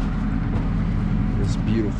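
A hand wipes snow off a car windshield.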